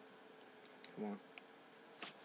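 A young man speaks a brief word close by.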